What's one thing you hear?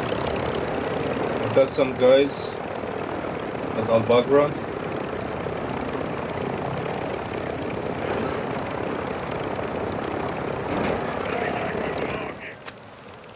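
A helicopter's rotor thumps and roars close by.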